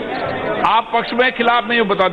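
A middle-aged man speaks firmly through a microphone in a large hall.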